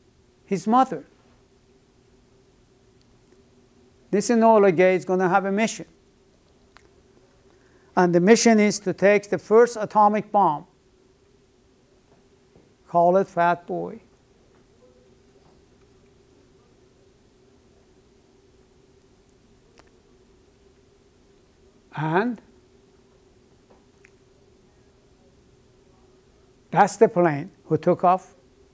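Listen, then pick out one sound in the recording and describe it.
An elderly man speaks calmly in short bursts with long pauses, close by.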